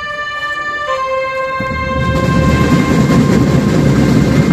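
A brass band plays long, held horn notes.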